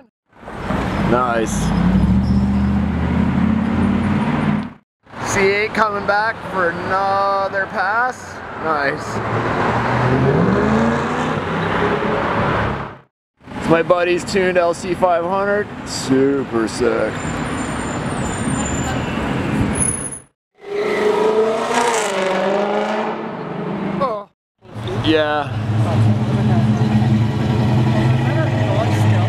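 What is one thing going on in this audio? A sports car engine revs and roars as it drives by.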